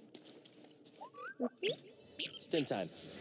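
A small robot chirps and beeps in rising and falling tones.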